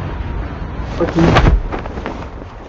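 A parachute snaps open with a loud whoosh.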